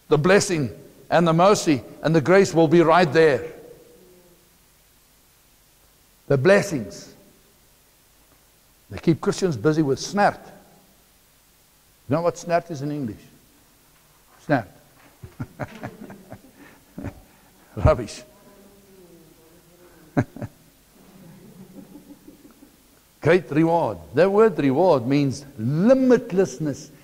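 A middle-aged man speaks with animation through a clip-on microphone, pausing often.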